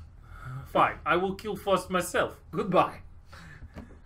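A young man talks with animation through a microphone.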